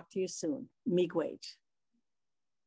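A middle-aged woman speaks warmly through an online call.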